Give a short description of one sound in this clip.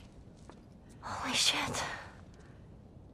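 A man speaks in a low, tense voice.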